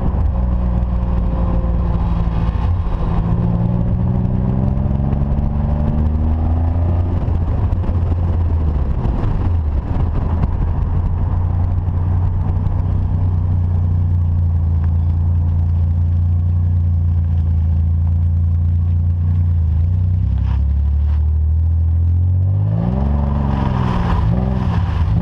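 A car engine hums and changes pitch as the car speeds up and slows down.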